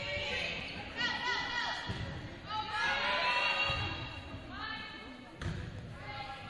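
A volleyball is struck with a sharp smack.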